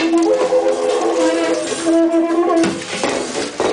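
A man blows a small horn, sounding loud wavering notes.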